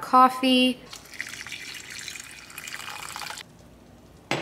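Thick liquid pours from a jar into a pot.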